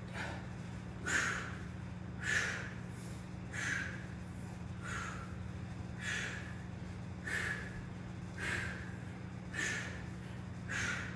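A young man breathes out sharply in steady, repeated bursts.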